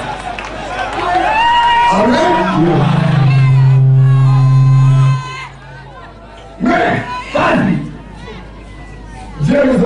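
A man speaks loudly into a microphone outdoors, heard through a loudspeaker.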